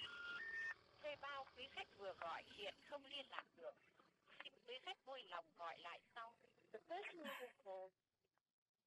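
A woman talks anxiously on a phone nearby.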